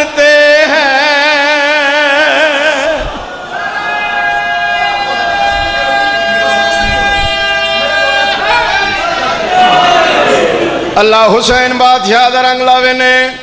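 A man sings a mournful chant loudly through a microphone, his voice echoing from loudspeakers.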